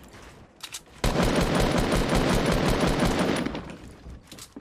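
Gunfire rattles rapidly.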